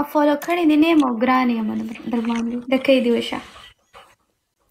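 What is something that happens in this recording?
A young woman sings over an online call.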